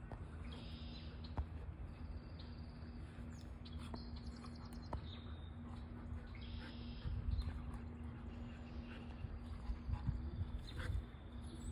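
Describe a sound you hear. Two dogs growl and snarl as they wrestle playfully.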